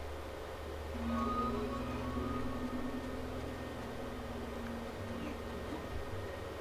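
A soft magical hum rings out and slowly fades.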